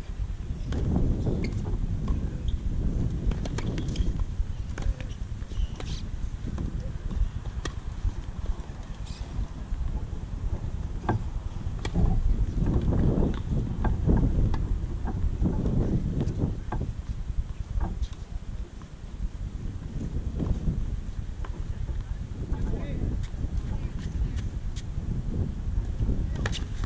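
Tennis balls are struck by rackets with sharp pops.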